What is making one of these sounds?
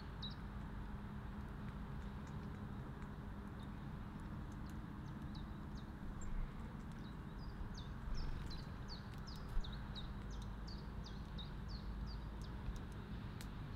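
Small birds chirp repeatedly nearby, outdoors.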